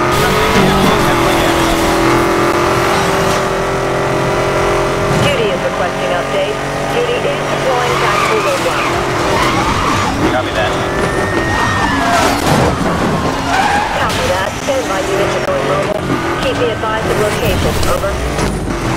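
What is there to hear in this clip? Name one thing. A sports car engine roars at high revs.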